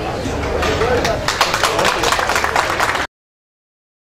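A small crowd claps their hands.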